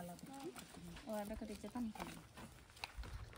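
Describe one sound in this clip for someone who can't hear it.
A young woman talks nearby outdoors.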